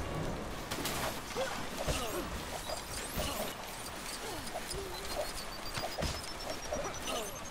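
Game objects smash and clatter in sharp bursts.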